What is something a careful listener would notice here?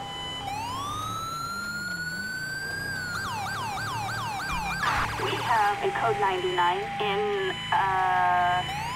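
A police siren wails, then switches to a fast yelp and short bursts.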